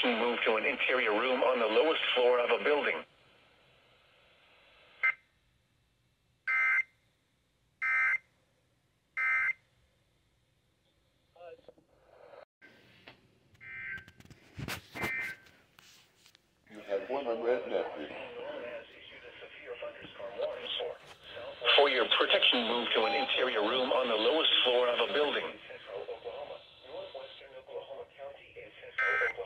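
A synthesized male voice reads out through a small radio speaker.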